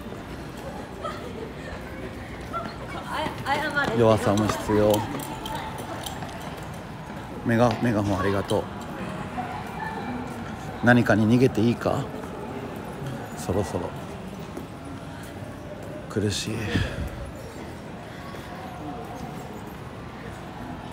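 A busy street murmurs steadily with distant traffic and passers-by.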